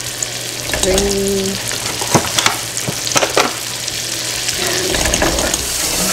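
A spoon taps against a metal pan.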